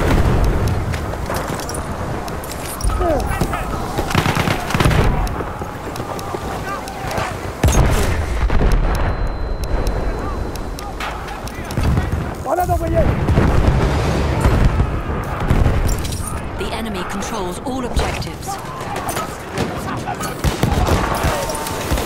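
Gunfire and explosions rumble around a battlefield.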